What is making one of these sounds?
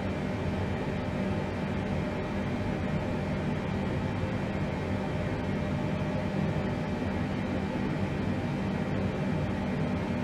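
Jet engines drone with a steady low rumble.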